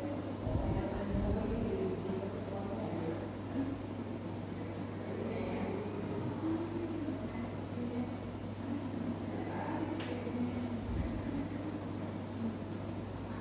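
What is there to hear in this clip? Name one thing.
A woman talks quietly and calmly nearby.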